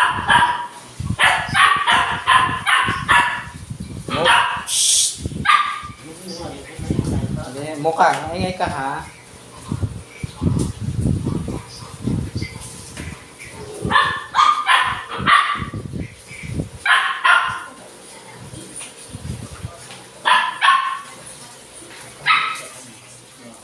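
A dog barks in short, sharp bursts nearby.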